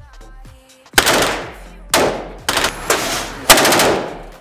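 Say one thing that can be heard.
Gunshots fire loudly in an echoing indoor range.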